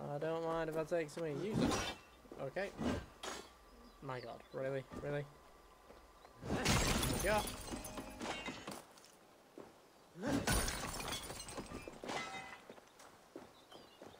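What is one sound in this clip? Blows and crashes sound from a fight.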